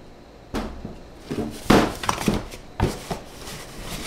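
A cardboard box thumps and rustles as it is handled.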